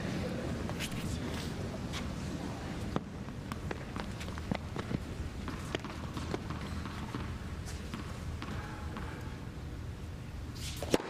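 A tennis ball bounces repeatedly on a hard court.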